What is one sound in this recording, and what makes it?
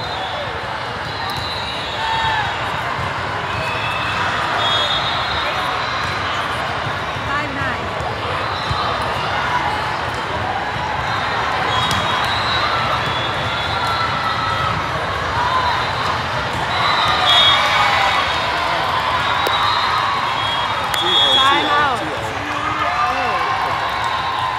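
Young female players shout and call to each other.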